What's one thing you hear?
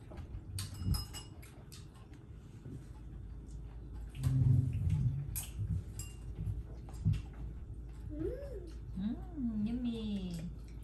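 Chopsticks and bowls clink on a table.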